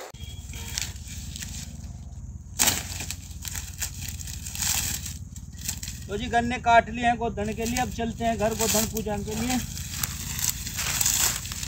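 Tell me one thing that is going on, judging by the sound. Dry cane stalks rustle and crackle as they are pulled and broken.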